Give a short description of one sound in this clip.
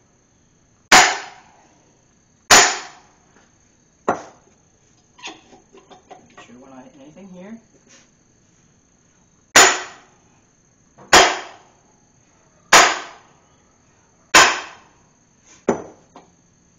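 A sledgehammer strikes a metal engine block with loud ringing clangs.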